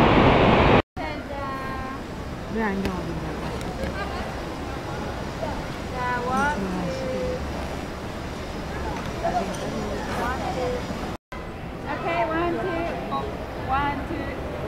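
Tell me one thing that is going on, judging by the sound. Men and women chat casually nearby outdoors.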